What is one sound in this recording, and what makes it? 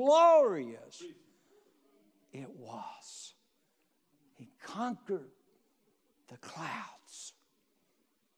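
An older man speaks with expression into a microphone, pausing between phrases.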